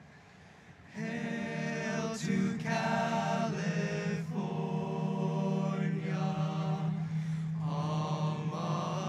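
A group of young men sings together in harmony outdoors, heard through loudspeakers in a large stadium.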